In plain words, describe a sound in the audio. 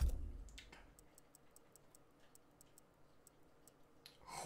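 Short soft ticks sound as a menu selection moves.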